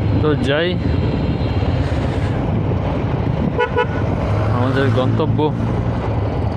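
Vehicle horns honk nearby in short bursts.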